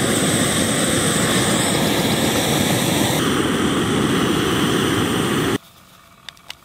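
A camping stove roars steadily.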